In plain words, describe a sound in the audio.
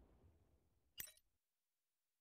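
A short menu click sounds.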